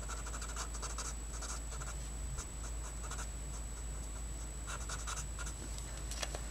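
A felt-tip marker squeaks and scratches softly across paper.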